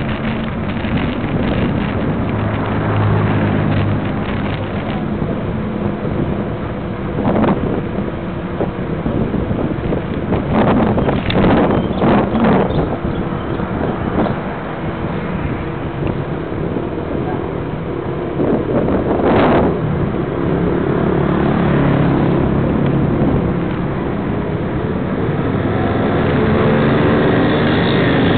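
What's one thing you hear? Wind buffets close to the microphone.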